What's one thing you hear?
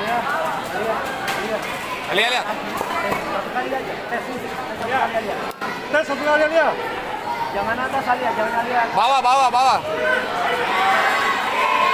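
A crowd of spectators chatters and cheers loudly in a large echoing hall.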